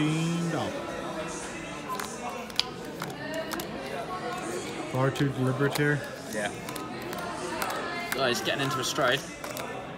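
Cards slap and shuffle on a table.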